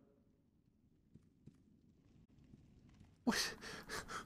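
Footsteps tread softly on a wooden floor.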